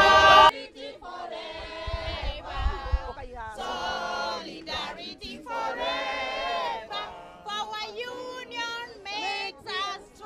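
A group of women sings loudly together outdoors.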